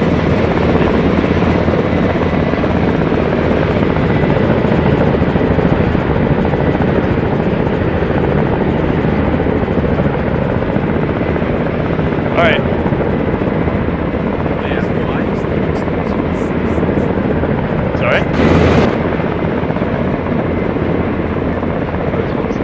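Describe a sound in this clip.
A helicopter's engine and rotor roar steadily inside the cabin.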